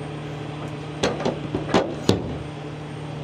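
Metal latches click and clack on an engine cover.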